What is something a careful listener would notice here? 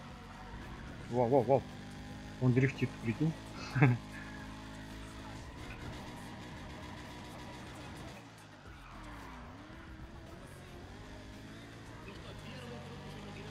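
A sports car engine revs at high speed.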